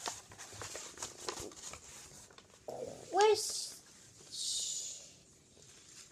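A sheet of paper rustles and crinkles close by.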